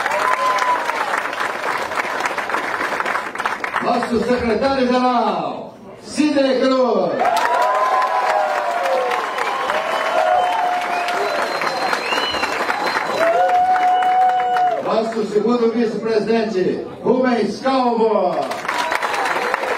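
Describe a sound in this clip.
A crowd claps along.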